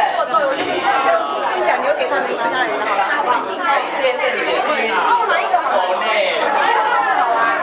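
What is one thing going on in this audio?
A crowd of men and women chatter with one another nearby.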